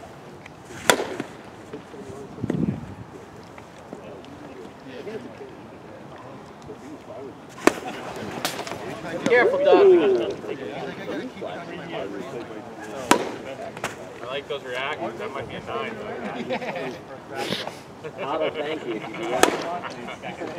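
A bat cracks sharply against a ball, again and again, outdoors.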